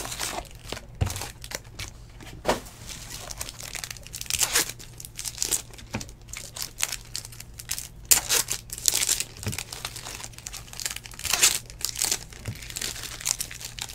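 Card packs and wrappers rustle and crinkle close by in someone's hands.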